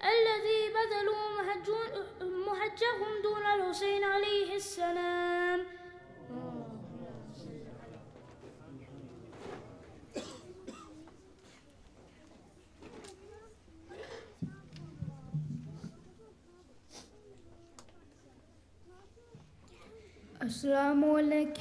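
A man chants a call to prayer in a long, melodic voice through loudspeakers in a large echoing hall.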